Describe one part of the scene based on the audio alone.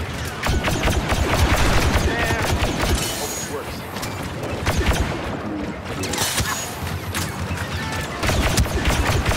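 Blaster pistols fire in rapid bursts.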